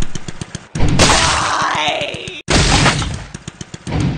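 A motorbike crashes with a heavy thud and rattle.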